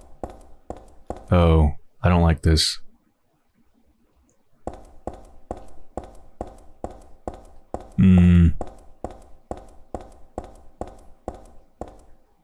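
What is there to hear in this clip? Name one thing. Boots clatter in quick footsteps on a tiled floor.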